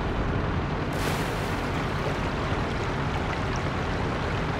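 Water splashes as a tank drives through a river.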